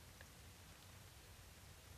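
A deer steps softly on the ground nearby.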